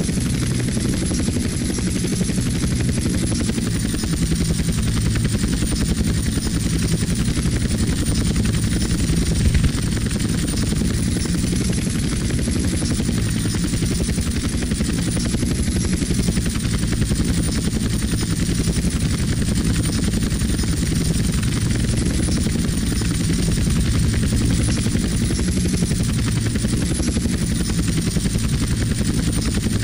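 Helicopter rotor blades thump steadily as a helicopter hovers and flies low.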